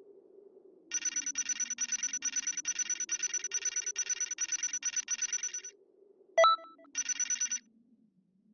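Rapid ticking beeps count up a score.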